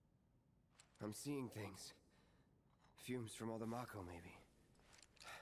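A young man mutters quietly to himself.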